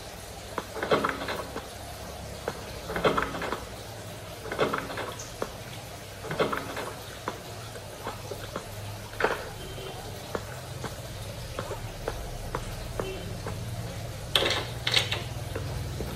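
Fingers tap lightly on a glass touchscreen.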